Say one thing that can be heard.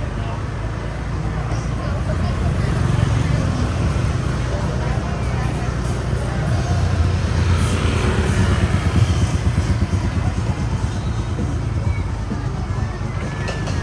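Motorbike engines hum past nearby.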